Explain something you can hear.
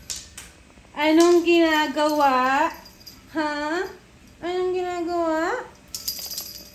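A dog howls close by in long, wavering cries.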